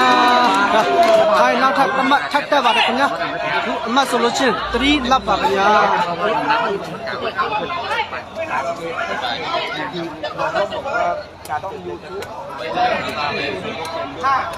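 A large outdoor crowd of young men and boys chatters, shouts and cheers loudly.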